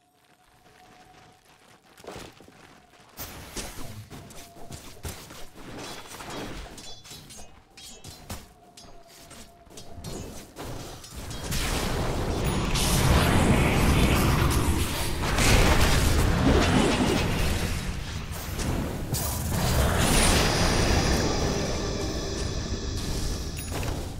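Game battle sounds of spells and strikes clash loudly, growing busier.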